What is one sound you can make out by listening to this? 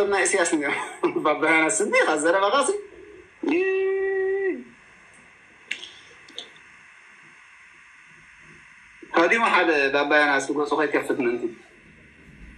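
A man speaks with animation, close and heard through a phone's microphone.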